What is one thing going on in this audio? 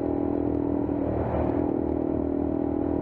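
Other motorcycles pass close by.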